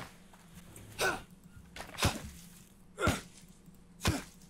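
Footsteps rustle through leaves and undergrowth at a steady walking pace.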